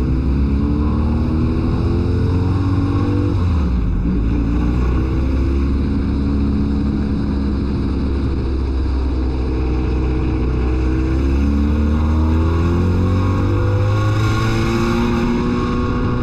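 A race car engine roars loudly from inside the cabin, dropping as the driver lifts off and rising again as the car speeds up.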